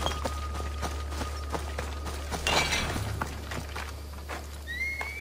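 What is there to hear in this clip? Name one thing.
Footsteps crunch quickly on a gravel path.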